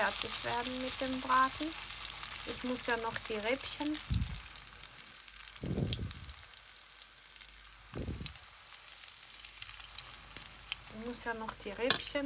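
A metal spoon clinks against a frying pan.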